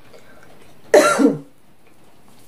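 A woman coughs close by.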